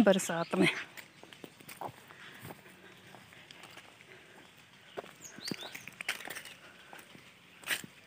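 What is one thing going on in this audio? Footsteps crunch dry leaves on a dirt path.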